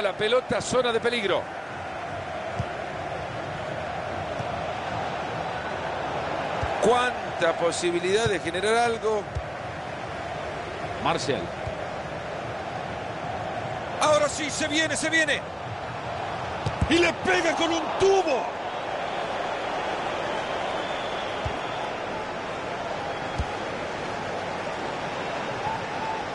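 A stadium crowd murmurs and cheers steadily throughout.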